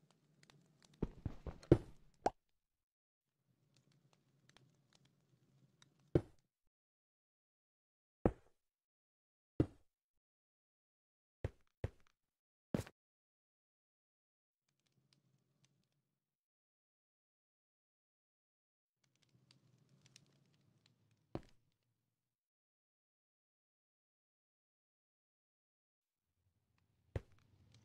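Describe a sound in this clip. Stone blocks knock sharply as they are placed and broken, now and then.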